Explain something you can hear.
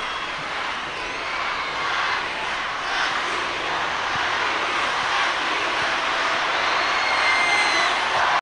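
A huge crowd cheers and screams loudly outdoors, building in intensity.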